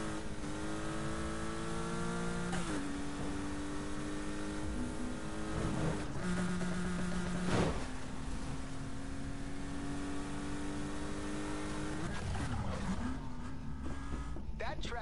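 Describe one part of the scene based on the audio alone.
A car engine roars at high revs, dropping in pitch briefly with each gear change.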